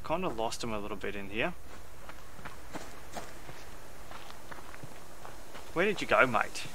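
Footsteps crunch softly through grass and gravel.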